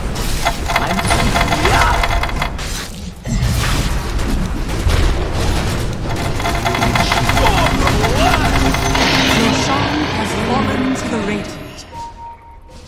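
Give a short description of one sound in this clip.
Spells crackle and blast in a loud, hectic fight.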